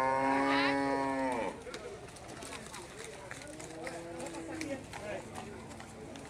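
Cattle hooves shuffle and thud on muddy ground.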